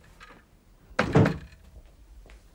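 A door shuts with a loud thud.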